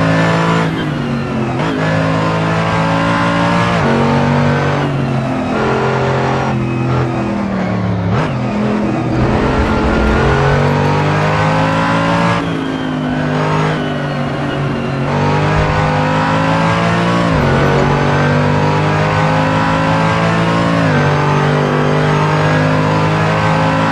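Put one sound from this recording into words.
A racing car engine roars loudly, revving up and dropping through gear changes.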